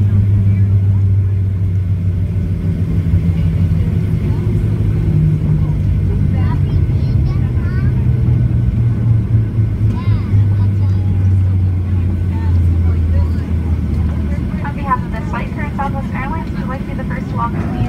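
Plane wheels rumble over the runway.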